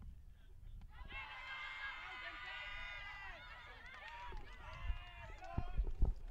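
Cricket players shout an appeal in the distance, outdoors.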